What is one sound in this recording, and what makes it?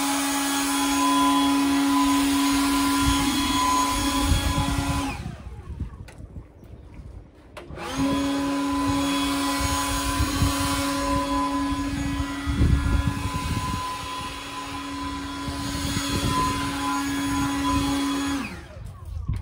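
A leaf blower whirs steadily nearby, stopping briefly and starting again.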